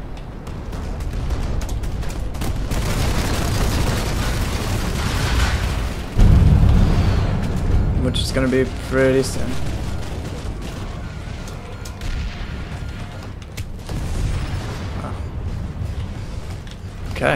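An aircraft engine roars with a deep, steady rumble.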